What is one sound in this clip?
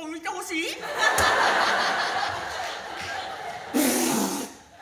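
An audience laughs in a large hall.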